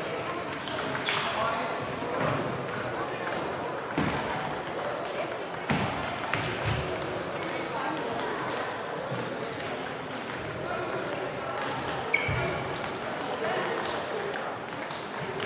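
Sneakers squeak sharply on the hall floor.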